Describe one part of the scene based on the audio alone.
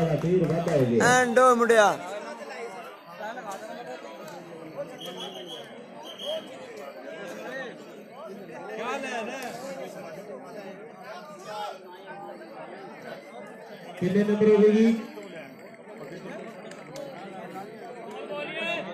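A crowd of young men chatters and calls out outdoors.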